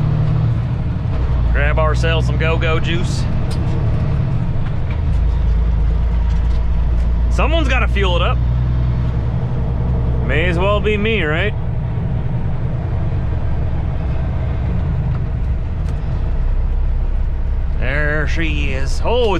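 A truck's diesel engine rumbles steadily while driving.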